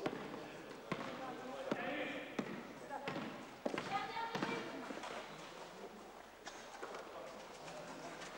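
Young men shout and call out across an echoing hall.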